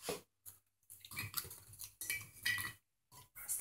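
A glass jar clinks and rattles as hands handle it.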